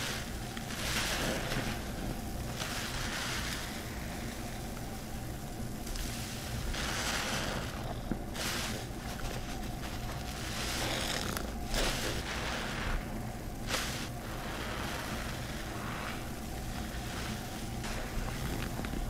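A wet, soapy sponge squishes and squelches as it is squeezed again and again.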